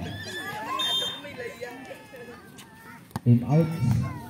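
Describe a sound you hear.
A volleyball thuds as it bounces on a hard court.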